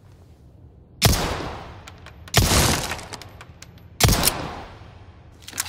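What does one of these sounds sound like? A pistol fires loud single shots that echo briefly.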